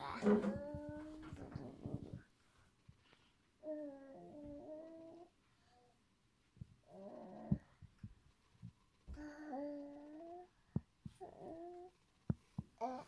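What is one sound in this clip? A young girl speaks softly and playfully up close.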